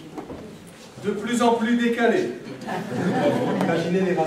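A mixed choir sings together.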